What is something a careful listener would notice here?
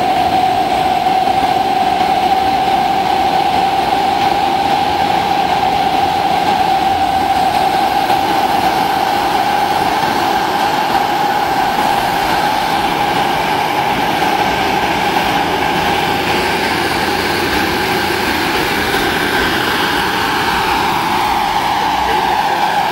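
A model helicopter's motor and rotor whine steadily and loudly as it lifts off.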